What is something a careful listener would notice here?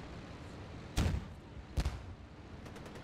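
Explosions boom heavily.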